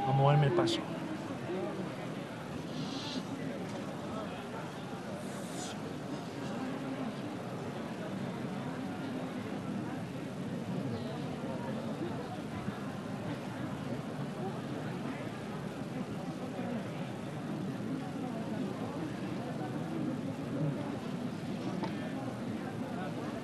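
A crowd murmurs and chatters nearby outdoors.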